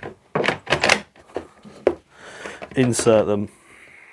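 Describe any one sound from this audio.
A battery clicks into a power tool.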